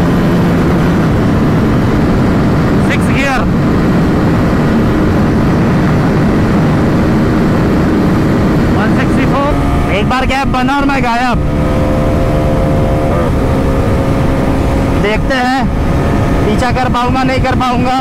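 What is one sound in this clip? A motorcycle engine roars at high speed and shifts through gears.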